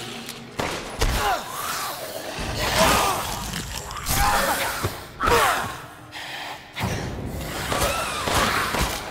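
A monster shrieks and growls close by.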